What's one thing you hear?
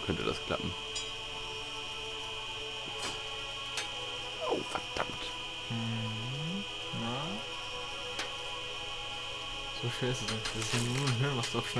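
Metal surgical instruments clink.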